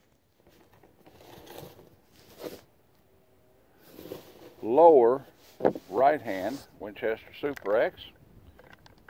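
An older man talks outdoors close by.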